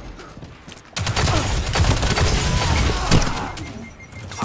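A loud explosion booms and rumbles in a video game.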